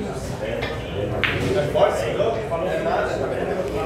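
Pool balls click together.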